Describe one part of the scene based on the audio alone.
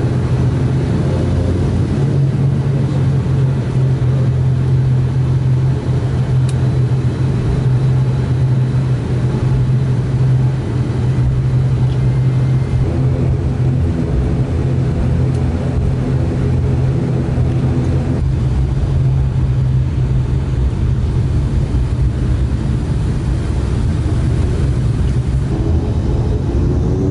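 The turboprop engines of an ATR 72 airliner drone, heard from inside the cabin.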